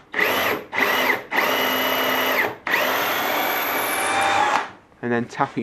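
A power drill whirs as it bores into wood.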